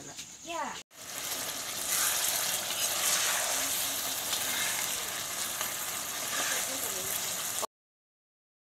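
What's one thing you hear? Food sizzles and bubbles in a hot pan.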